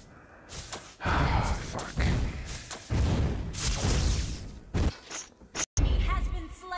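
Magic blasts and whooshes burst out in a fast fantasy battle.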